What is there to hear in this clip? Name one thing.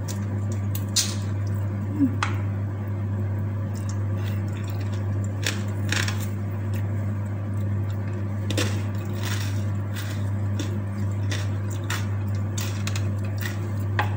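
A woman chews food noisily close up.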